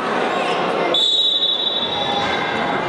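A referee's whistle blows one short blast in a large echoing hall.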